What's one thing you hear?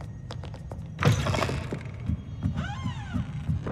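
A heavy wooden door swings open with a loud creak.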